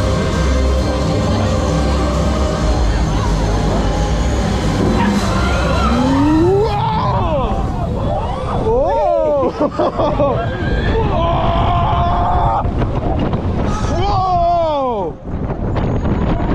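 A roller coaster rumbles and rattles along its track.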